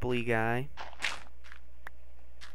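A block of dirt breaks with a short crumbling thud.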